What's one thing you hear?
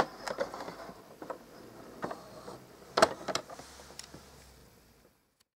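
A small metal ball clicks and rattles along a plastic toy track.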